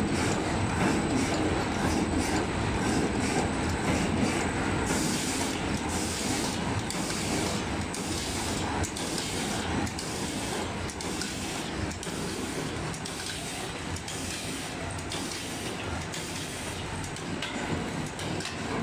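A packing machine runs with a steady mechanical hum.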